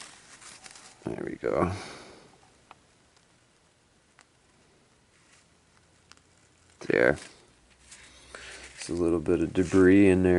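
A paper towel rustles softly.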